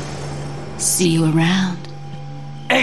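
A young woman speaks softly and teasingly, close by.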